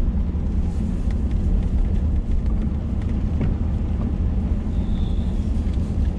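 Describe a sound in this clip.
A windshield wiper sweeps once across the glass.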